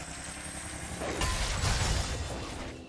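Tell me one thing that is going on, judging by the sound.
A magic spell bursts with a loud whooshing crackle.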